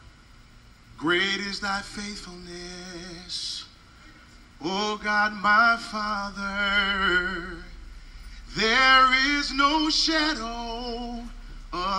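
A man preaches with passion into a microphone, heard through loudspeakers in a large echoing hall.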